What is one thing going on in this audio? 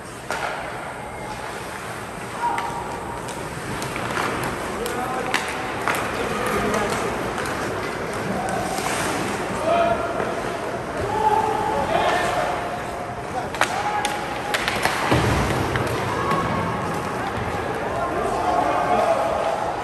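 Hockey sticks clack against a puck and the boards.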